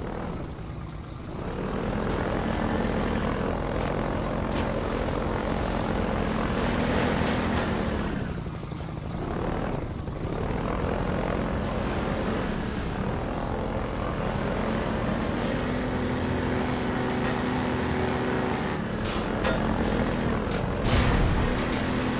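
An airboat engine roars steadily and changes pitch.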